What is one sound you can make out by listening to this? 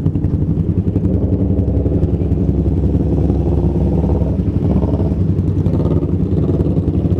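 Another motorcycle revs and rides off.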